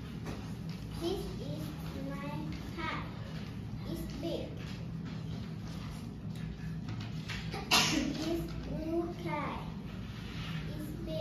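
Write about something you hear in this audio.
A young girl reads aloud slowly and softly.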